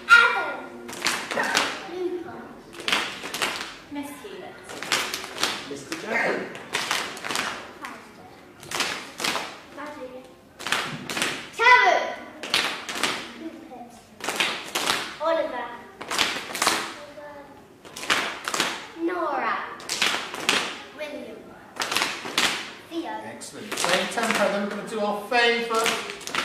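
Children clap their hands in a rhythm, echoing in a large hall.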